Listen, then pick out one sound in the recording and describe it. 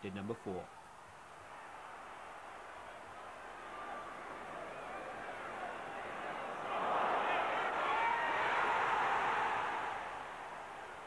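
A large stadium crowd roars and cheers loudly, swelling and then dying down.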